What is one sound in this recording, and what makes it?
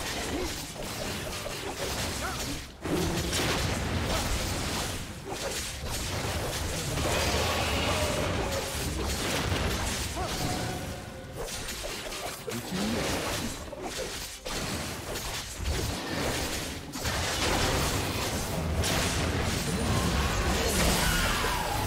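Magic blasts and weapon hits crackle and thud as fighters battle a huge monster.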